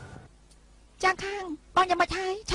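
A young woman calls out loudly from nearby.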